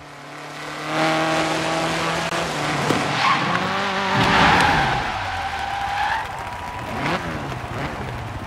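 A car engine revs.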